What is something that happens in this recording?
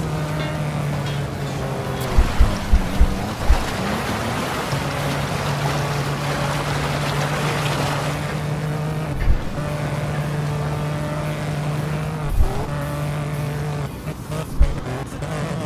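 A race car engine drones steadily, dipping briefly between gear changes.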